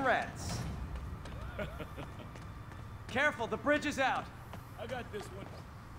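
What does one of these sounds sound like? Footsteps run across wooden boards.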